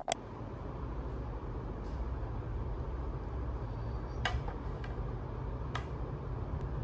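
A bowl knocks lightly against a plate.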